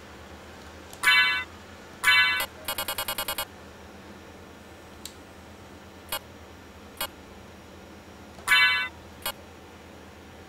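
Short electronic menu chimes and blips sound now and then.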